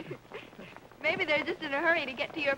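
A man speaks cheerfully.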